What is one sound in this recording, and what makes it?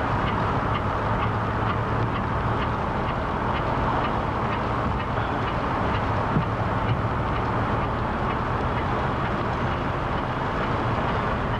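A bicycle chain ticks rhythmically as the pedals turn.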